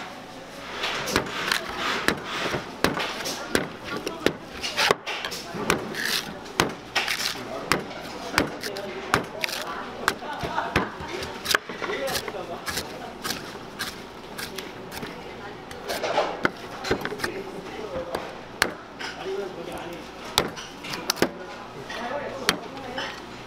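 A cleaver chops into a coconut with sharp, repeated thwacks.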